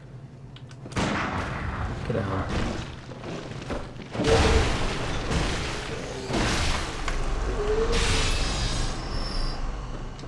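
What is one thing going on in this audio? Blades clash and strike with sharp metallic hits.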